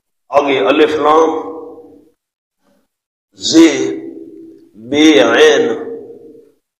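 A man recites in a chanting voice through a microphone, with a slight echo.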